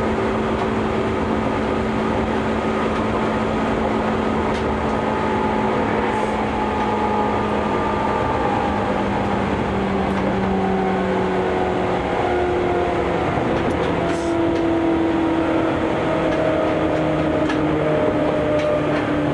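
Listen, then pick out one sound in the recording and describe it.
A train rumbles steadily along the tracks, its motor humming and slowly changing pitch.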